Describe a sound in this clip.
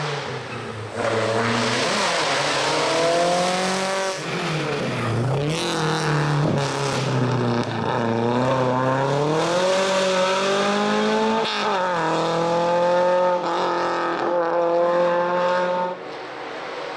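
A racing car's engine revs hard as the car speeds past, climbing and dropping in pitch with each gear change.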